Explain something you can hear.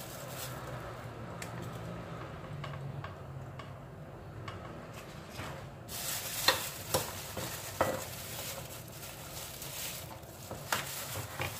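Banana leaves rustle and crinkle as they are handled.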